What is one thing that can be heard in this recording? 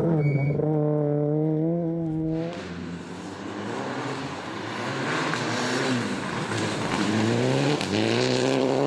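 A rally car engine roars and revs hard as the car speeds past.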